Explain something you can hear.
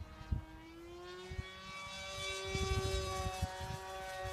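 An aircraft drones steadily high overhead.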